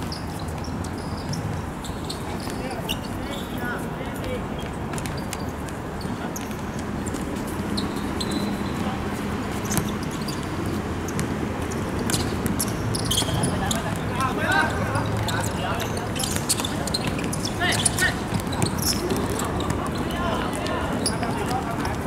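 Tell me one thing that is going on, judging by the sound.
A football thuds off a player's foot on an outdoor hard court.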